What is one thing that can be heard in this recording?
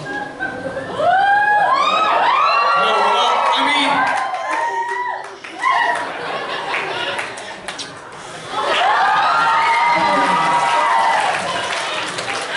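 A woman cries out in long, rising and falling wails in an echoing hall.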